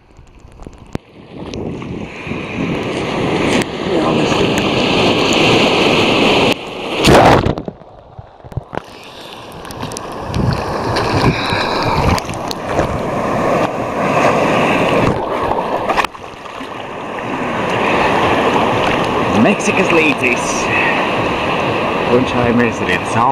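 Waves crash and churn loudly close by.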